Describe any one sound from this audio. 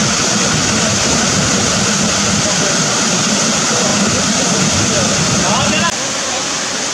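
Water rushes and splashes steadily nearby.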